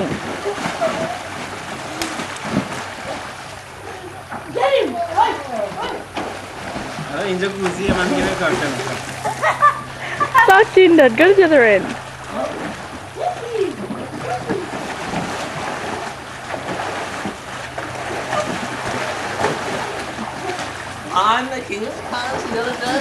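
Water splashes as people move in a pool.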